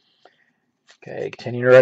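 Trading cards shuffle and rustle in hands.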